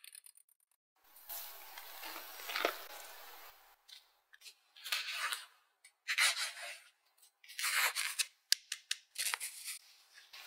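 A metal sieve rustles and taps as flour is sifted through it.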